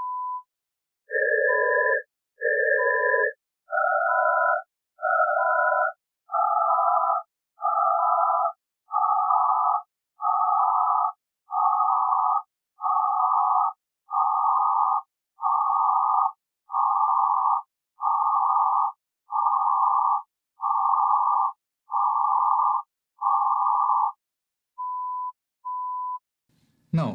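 A steady high beep sounds in short pulses between and under the noise bursts.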